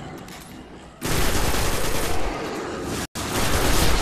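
Gunfire blasts in rapid bursts.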